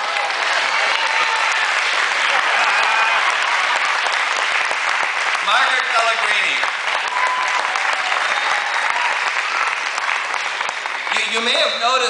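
An audience claps and cheers loudly in a large hall.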